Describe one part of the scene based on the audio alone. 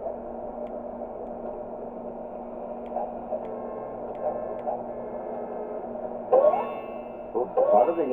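Video game music plays steadily throughout.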